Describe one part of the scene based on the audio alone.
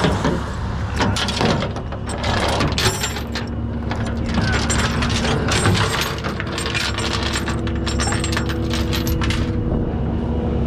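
A tow chain clanks and rattles across a steel deck.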